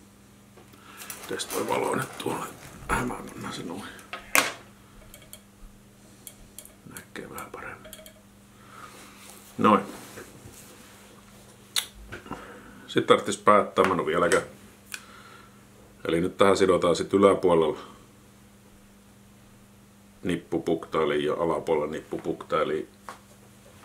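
A man speaks calmly and steadily close to a microphone.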